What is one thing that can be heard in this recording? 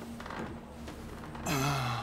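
A man groans weakly.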